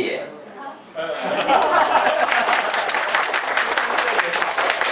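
A group of people clap their hands.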